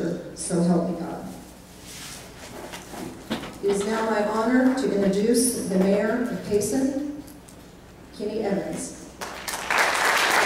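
A woman speaks into a microphone over a loudspeaker in a large echoing hall.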